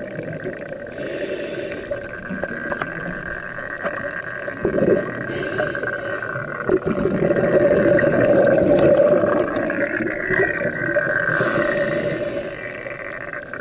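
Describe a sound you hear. A diver breathes in through a scuba regulator with a hissing rush.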